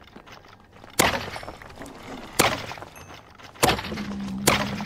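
Sword strikes hit creatures with sharp thuds.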